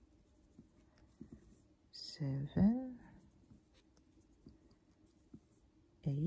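A crochet hook softly scratches and ticks against yarn.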